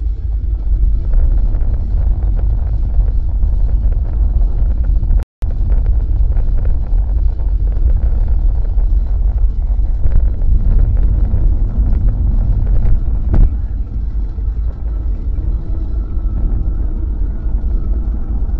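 A car's engine hums steadily from inside.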